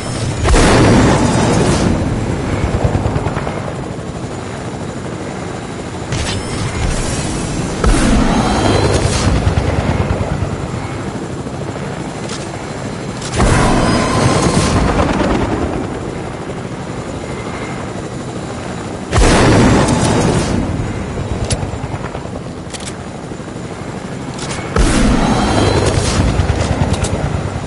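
A helicopter's rotor whirs steadily.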